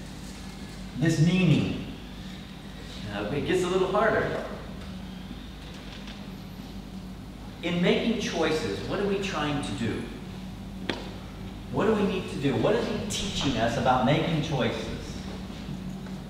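A middle-aged man speaks calmly, with short pauses.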